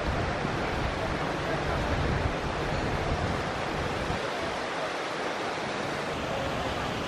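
A waterfall splashes steadily into a pool.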